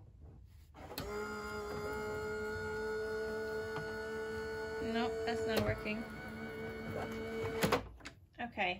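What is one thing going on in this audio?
A small electric machine hums steadily as it feeds plates through its rollers.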